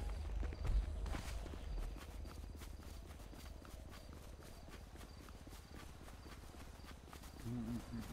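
Footsteps run across grass.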